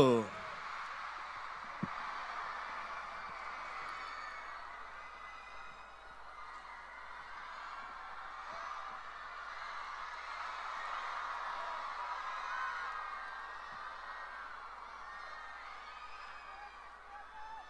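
A large concert crowd cheers and sings along in a big echoing arena.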